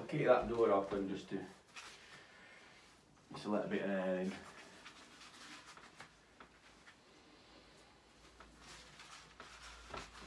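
Rubber work gloves rustle and snap as they are pulled on.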